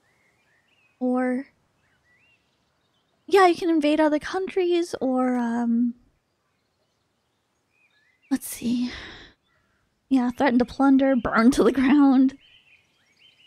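A young woman talks with animation close to a microphone, in short bursts.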